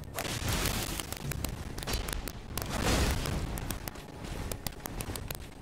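A sword slashes and clangs against armour.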